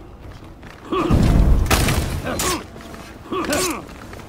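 Steel swords clash and ring.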